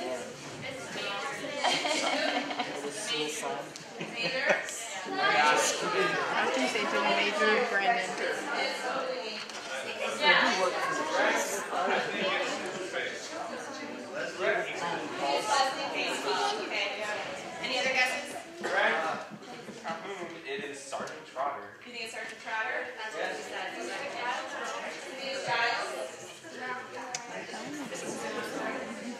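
A young woman speaks with animation to an audience.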